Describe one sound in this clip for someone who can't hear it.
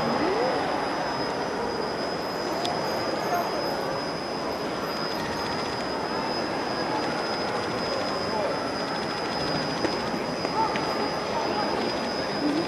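An overhead crane hums steadily as it travels in a large echoing hall.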